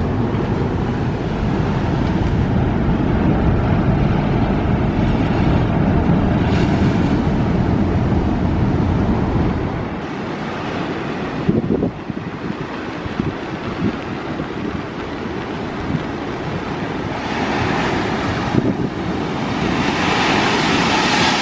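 Rough sea waves crash and roar against rocks.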